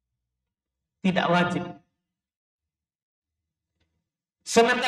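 A man speaks calmly into a close microphone, in short phrases.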